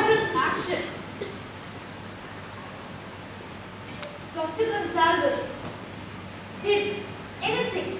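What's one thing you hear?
A young man speaks into a microphone in a large hall.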